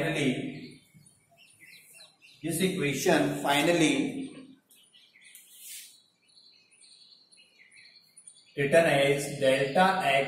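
A man explains calmly and clearly into a close microphone, in short bursts with pauses.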